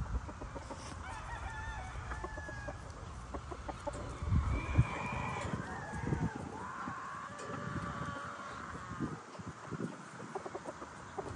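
A rooster flaps its wings.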